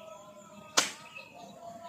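A golf club strikes a ball with a sharp click.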